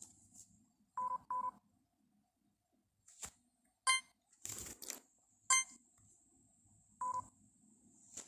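Short electronic chimes ring out several times.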